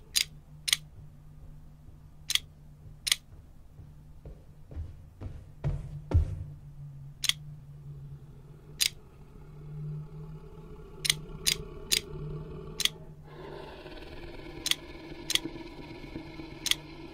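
Tiles click softly as they slide into place.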